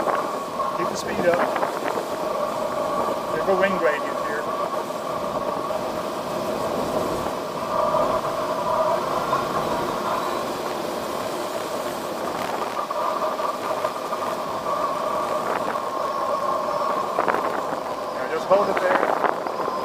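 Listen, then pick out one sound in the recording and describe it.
An elderly man speaks briefly nearby.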